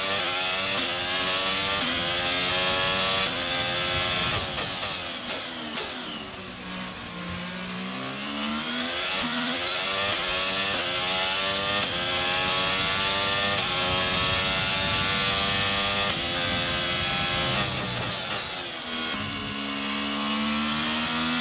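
A racing car engine screams at high revs, dropping in pitch through gear changes under braking and rising again as it accelerates.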